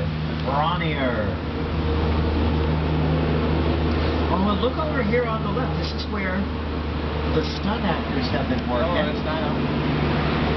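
A woman talks nearby in short bursts.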